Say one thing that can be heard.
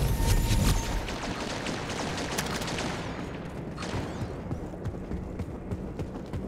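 Quick footsteps thud on a hard floor.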